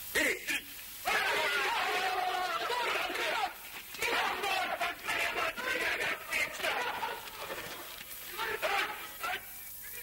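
Several men shout and clamour together.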